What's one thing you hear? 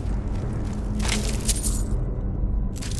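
Coins clink and jingle briefly.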